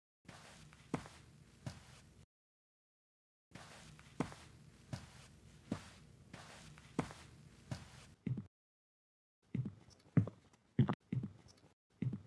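Footsteps tap on a floor at a steady pace.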